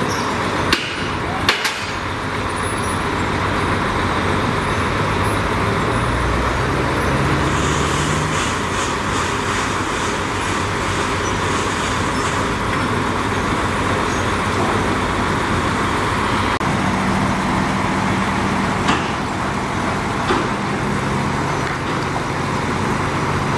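A bulldozer engine rumbles steadily.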